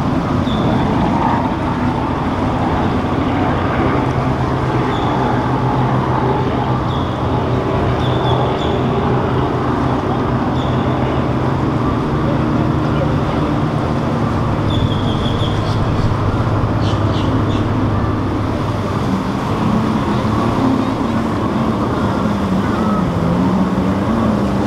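Water splashes and churns against a boat's hull.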